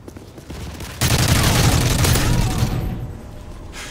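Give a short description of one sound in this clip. A rifle fires a loud, rapid burst of shots.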